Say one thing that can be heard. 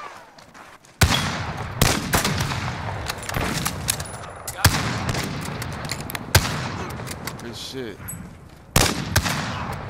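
Loud single rifle shots crack and echo, spaced a few seconds apart.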